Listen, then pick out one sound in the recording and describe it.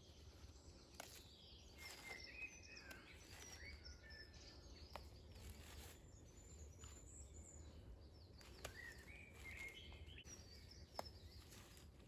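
Plant stems snap with small clicks.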